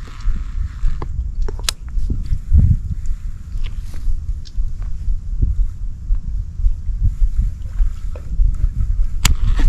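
A fishing reel clicks and rattles as it is handled.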